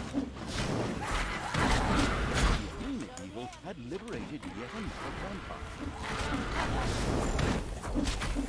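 Swords clash and hit in a noisy fight.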